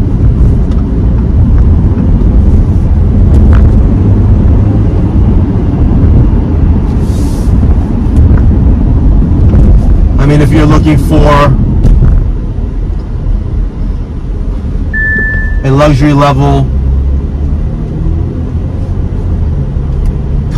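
A car engine hums with low road rumble as the car drives along.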